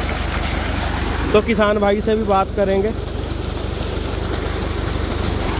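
Water gushes and splashes loudly from a pipe.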